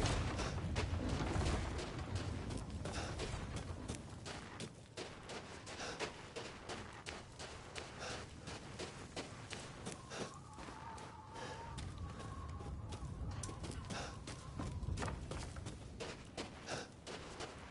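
Footsteps crunch through snow at a walking pace.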